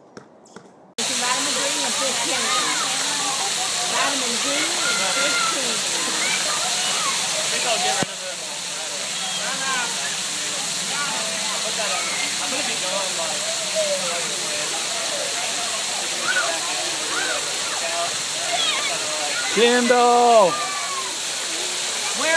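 Falling water splashes steadily onto stone.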